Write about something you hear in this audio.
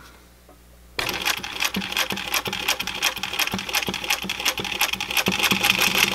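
A sewing machine stitches with a fast, steady clatter.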